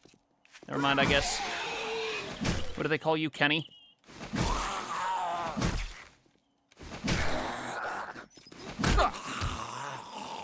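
A wooden club thuds heavily into a zombie again and again.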